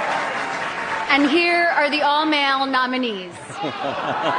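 A woman speaks through a microphone in a large hall.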